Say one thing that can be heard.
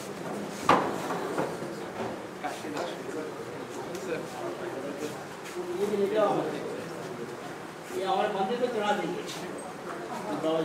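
Several men talk with one another nearby.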